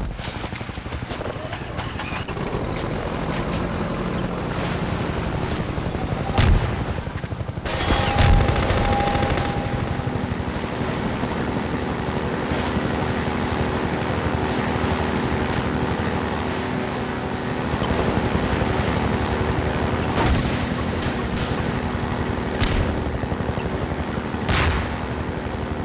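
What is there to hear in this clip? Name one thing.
A boat engine runs steadily and roars as the boat speeds over water.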